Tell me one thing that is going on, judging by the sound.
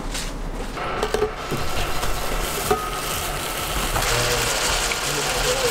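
Tongs clack against a griddle.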